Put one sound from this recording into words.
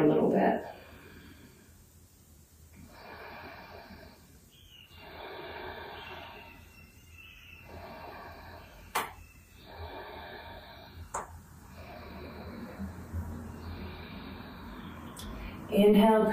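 A woman speaks calmly and steadily, close by in a small room.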